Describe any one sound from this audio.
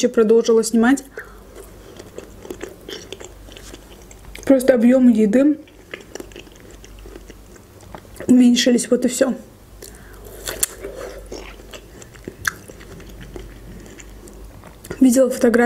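A young woman chews a strawberry with wet, crunchy sounds.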